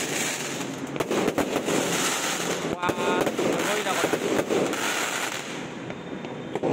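Fireworks pop and crackle overhead.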